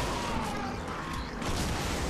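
A burst of magic crackles and booms.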